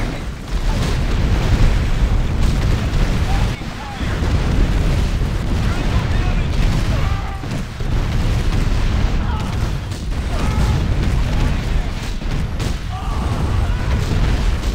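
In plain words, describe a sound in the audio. Explosions boom and gunfire rattles in a battle.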